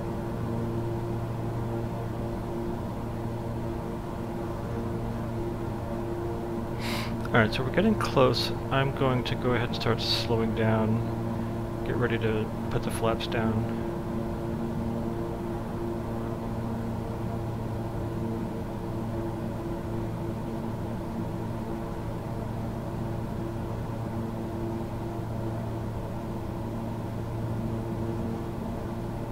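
Jet engines hum steadily inside the cockpit.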